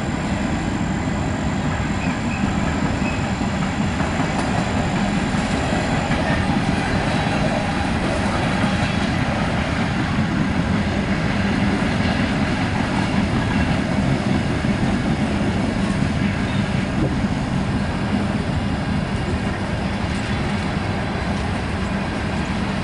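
A freight train rumbles and clatters steadily past on the rails.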